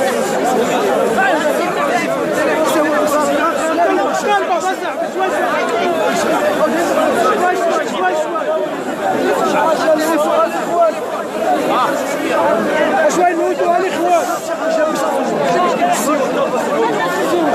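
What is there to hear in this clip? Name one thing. A crowd murmurs and talks in the background outdoors.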